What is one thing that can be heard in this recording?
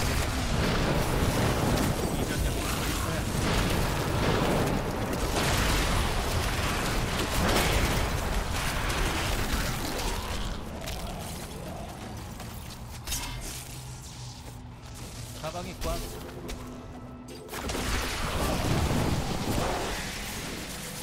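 Game spells blast and crackle in loud bursts.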